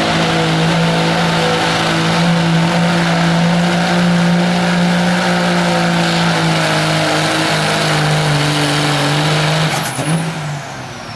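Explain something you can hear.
A diesel truck engine roars loudly at full throttle.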